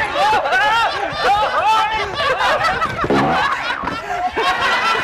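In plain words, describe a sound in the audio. Several young men shout and laugh excitedly on a stage.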